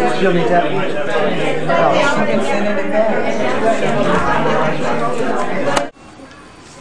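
Many people talk at once in a busy room.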